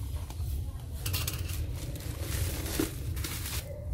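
Plastic wrapping crinkles under a hand.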